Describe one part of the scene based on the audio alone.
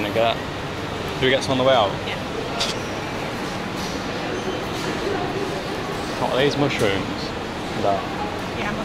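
A young man talks close up, with animation.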